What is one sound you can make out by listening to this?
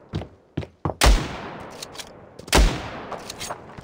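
Two loud gunshots ring out, each followed by a fading echo.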